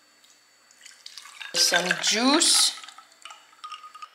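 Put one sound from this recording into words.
Liquid pours into a glass, rising in pitch as it fills.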